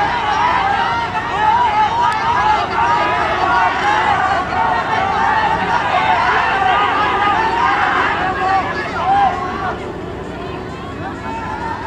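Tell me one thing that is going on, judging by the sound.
A crowd cheers and shouts from the stands.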